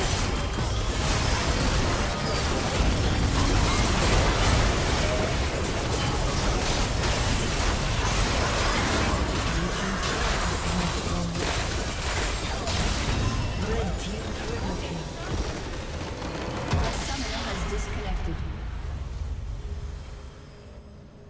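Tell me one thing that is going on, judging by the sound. Game spell effects crash and explode in a dense battle.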